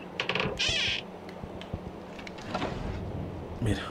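A wooden drawer slides open.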